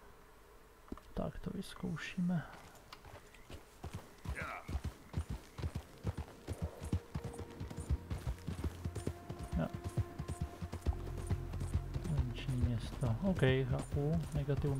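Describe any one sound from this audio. A horse gallops, its hooves thudding rapidly on a dirt path.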